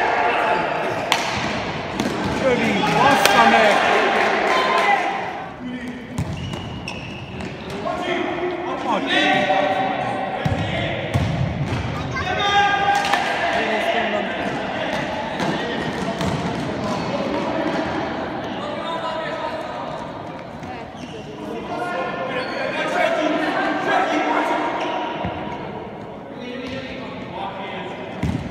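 Men shout across a large echoing hall.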